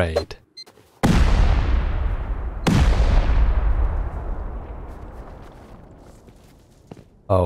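A game's explosives go off in two heavy booms that rumble and slowly fade.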